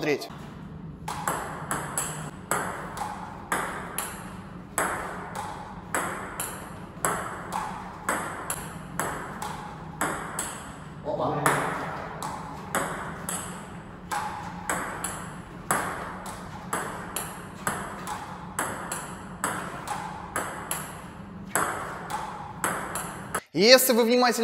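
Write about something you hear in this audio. A table tennis ball clicks on bats and the table in a quick, steady rally.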